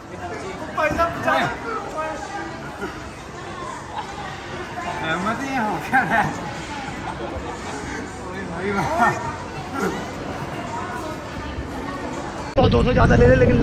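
Young men laugh and exclaim excitedly.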